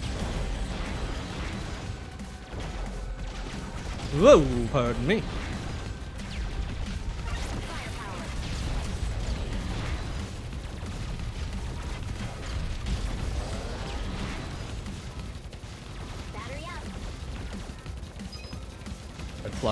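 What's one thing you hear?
Rapid electronic gunfire and small explosions rattle on without pause.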